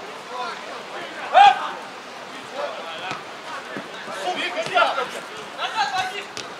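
Young players shout to each other outdoors across a football pitch.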